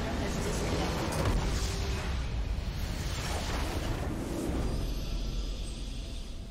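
A large explosion booms and rumbles, then fades.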